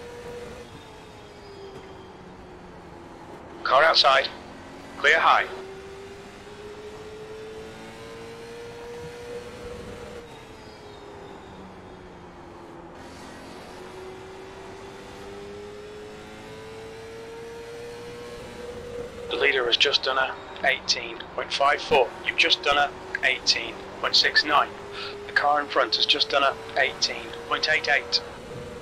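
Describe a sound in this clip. A race car engine drones steadily, its pitch slowly rising and falling.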